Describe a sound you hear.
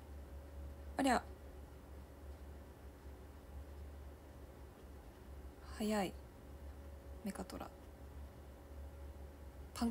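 A young woman speaks softly in short bursts, close to a microphone.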